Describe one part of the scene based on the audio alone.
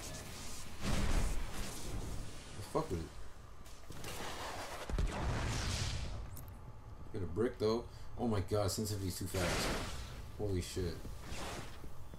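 Rifle shots crack out in short bursts.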